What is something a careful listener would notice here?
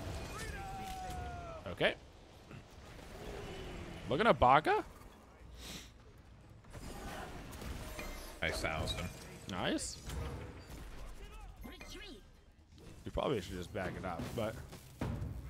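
Game sound effects whoosh and clang.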